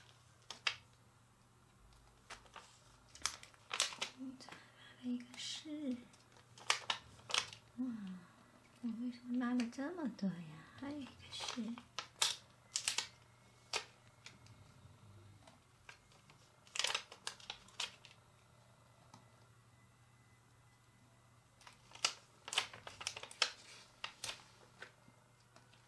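Fingers tap and press stickers onto a card.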